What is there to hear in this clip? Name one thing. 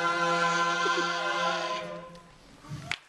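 A group of young men sings a sustained chord in close harmony through microphones.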